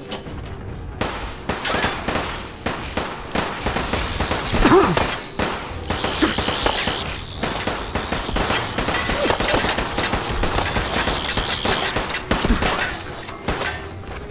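A laser gun fires in rapid bursts with crackling blasts.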